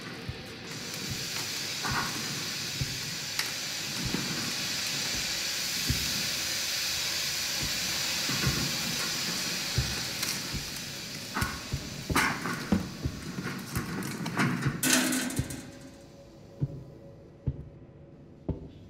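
Hands knock and clank against a metal railing.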